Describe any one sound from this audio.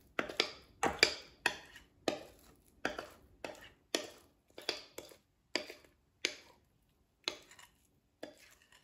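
A spatula scrapes and taps against a glass bowl.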